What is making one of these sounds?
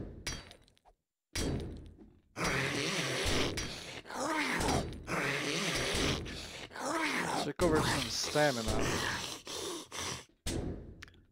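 An axe strikes a metal door with sharp clangs.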